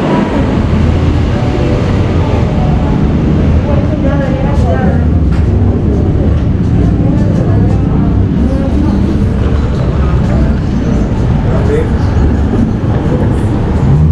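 People talk in the distance outdoors.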